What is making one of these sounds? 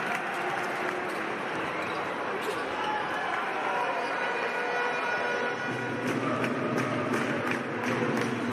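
A crowd murmurs and cheers throughout a large echoing arena.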